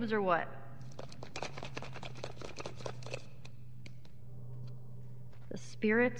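A plastic skull rattles as it is shaken.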